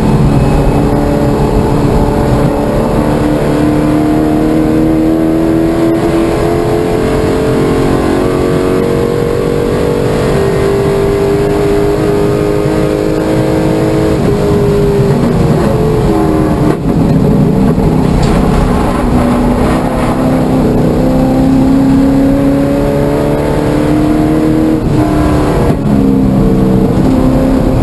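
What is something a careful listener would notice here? A car engine roars loudly from inside the cabin, its pitch rising and falling as it revs.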